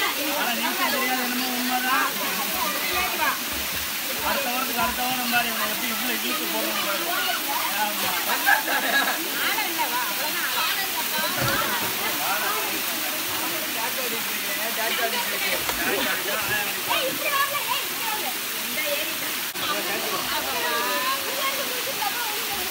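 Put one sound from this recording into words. Water splashes steadily down a rock face.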